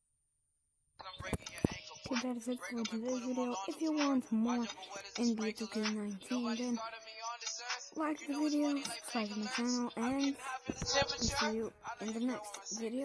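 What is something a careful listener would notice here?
A boy talks into a close microphone with animation.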